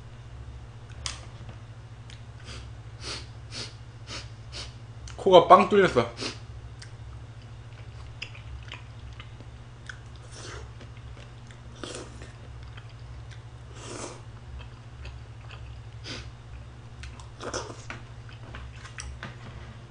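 A young man chews and slurps food noisily close to a microphone.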